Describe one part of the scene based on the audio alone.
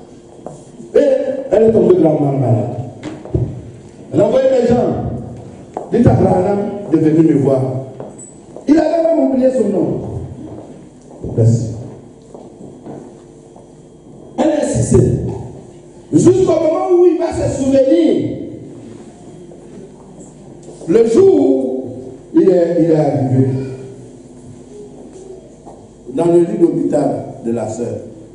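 A man preaches loudly and with fervour into a microphone, heard through loudspeakers in an echoing hall.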